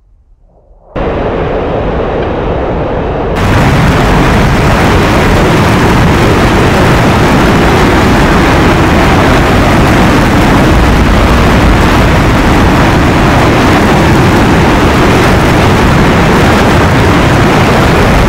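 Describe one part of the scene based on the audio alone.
A jet engine roars as a jet flies low.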